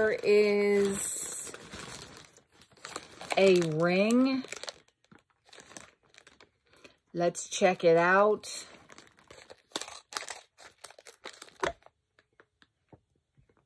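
A plastic wrapper crinkles in someone's hands.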